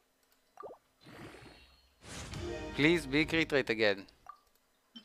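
A short game jingle plays as an item levels up.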